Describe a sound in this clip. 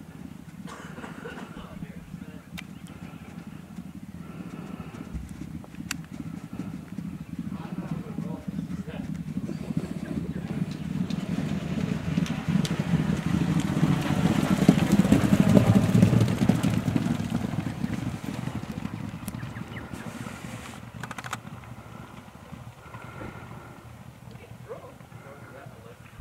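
Horses gallop past on turf, growing louder as they near and fading as they move away.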